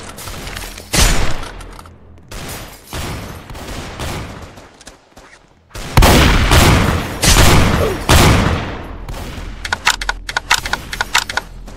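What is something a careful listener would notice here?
Gunshots ring out in loud bursts, followed by rapid shots.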